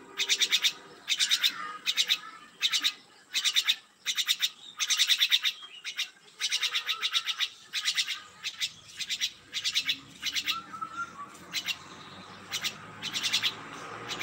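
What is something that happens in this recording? A myna calls in rapid chattering bursts.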